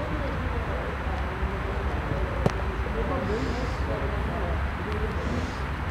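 Footsteps thud softly on wet grass as a group jogs.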